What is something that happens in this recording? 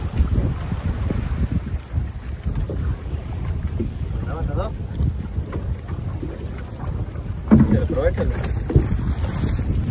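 Waves slap against a small boat's hull.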